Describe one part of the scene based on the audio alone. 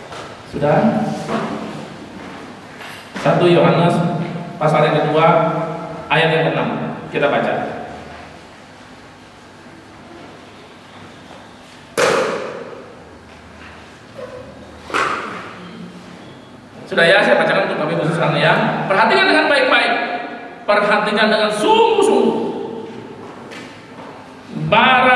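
A middle-aged man speaks with feeling into a microphone over loudspeakers in an echoing hall, pausing often.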